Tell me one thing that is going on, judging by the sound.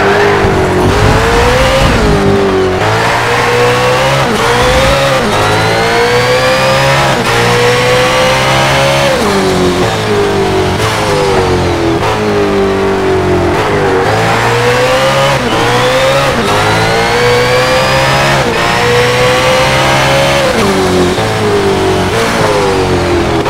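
A racing car engine revs hard, rising through the gears and dropping as it shifts.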